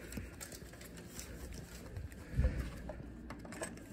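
A key card slides into the slot of an electronic door lock.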